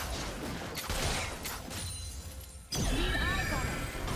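Magic spells whoosh and crackle in a fast battle.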